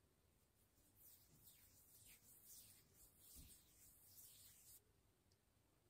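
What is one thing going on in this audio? Hands rub and brush softly close to a microphone.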